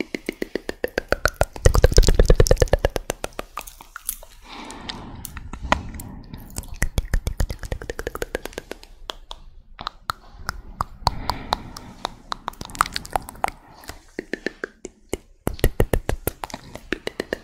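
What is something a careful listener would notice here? A woman whispers softly and closely into a microphone.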